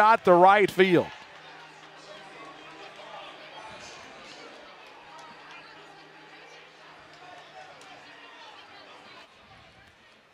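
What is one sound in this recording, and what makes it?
A large crowd murmurs in an open-air stadium.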